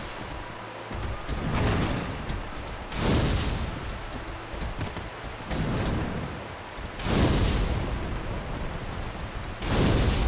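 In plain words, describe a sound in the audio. Heavy blows and swooshes of a fantasy fight come in loud bursts.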